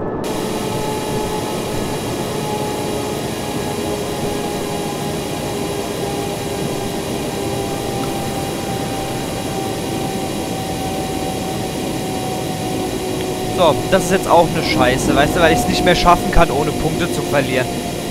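A train rolls along the rails.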